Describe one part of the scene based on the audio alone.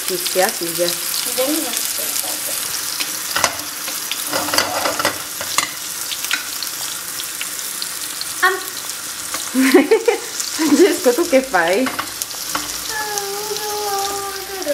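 Food sizzles in hot oil in a frying pan.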